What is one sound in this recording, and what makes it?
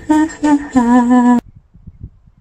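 A young woman talks cheerfully close to the microphone.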